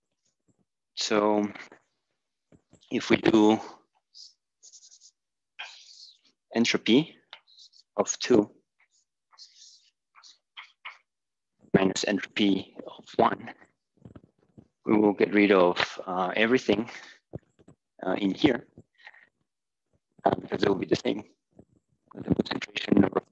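A man speaks calmly and clearly, as if lecturing.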